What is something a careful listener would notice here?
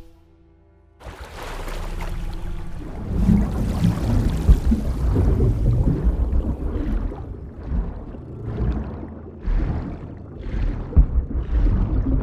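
A waterfall roars and rushes loudly.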